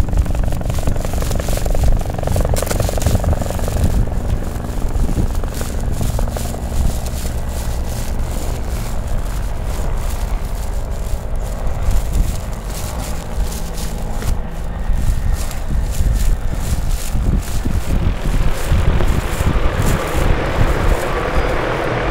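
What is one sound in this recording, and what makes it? Flames crackle and roar inside a burning bag.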